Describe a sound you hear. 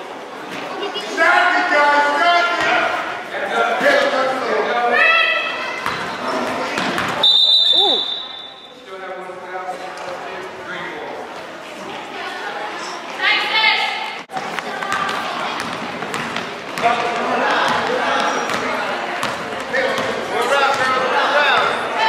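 Spectators shout and cheer loudly in an echoing hall.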